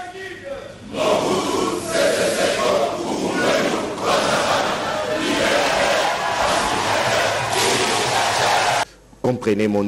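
A large crowd cheers and applauds loudly in an echoing hall.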